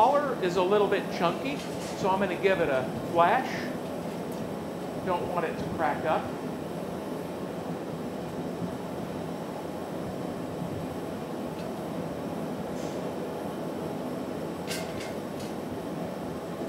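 A glass furnace roars steadily.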